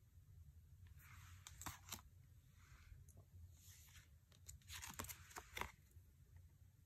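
Stiff cards slide and rustle against each other close by.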